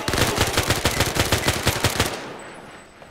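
A submachine gun fires a rapid burst of shots that echo in a large metal hall.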